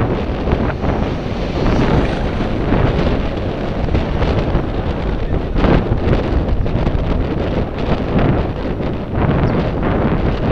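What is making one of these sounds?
Wind rushes loudly past a microphone on a moving bicycle.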